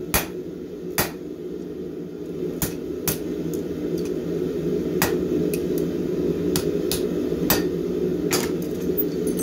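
A hammer strikes hot metal on an anvil with sharp ringing blows.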